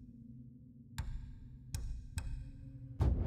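Menu clicks sound sharply a few times.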